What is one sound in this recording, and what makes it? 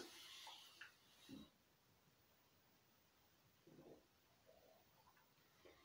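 A man sips a drink.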